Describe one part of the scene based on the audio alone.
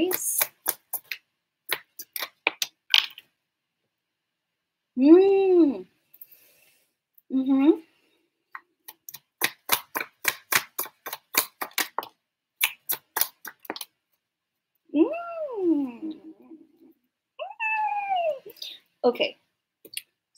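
Small objects tap and click in a young woman's hands.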